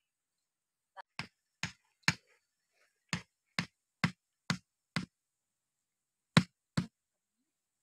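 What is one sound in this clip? A blade knocks sharply on a wooden stake, blow after blow.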